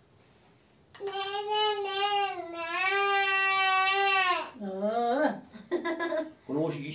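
A baby squeals and babbles loudly close by.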